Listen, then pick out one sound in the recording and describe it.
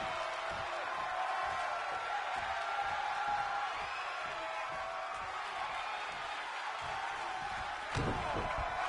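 Heavy thuds land on a wrestling mat.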